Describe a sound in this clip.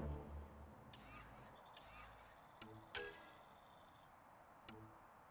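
Short electronic clicks tick in quick succession.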